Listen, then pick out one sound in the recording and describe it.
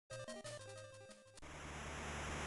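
A short electronic game melody plays.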